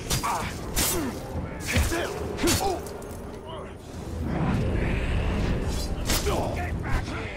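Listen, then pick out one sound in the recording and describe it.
Sharp blade strikes and impacts land in quick bursts.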